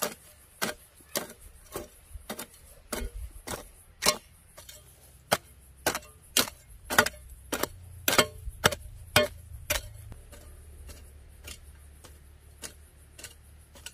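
A hoe chops repeatedly into dry, hard soil with sharp thuds.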